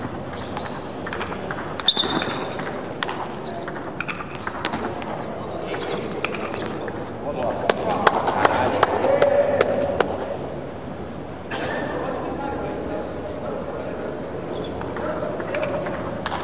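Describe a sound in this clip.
A ping-pong ball clicks against paddles and the table in quick rallies.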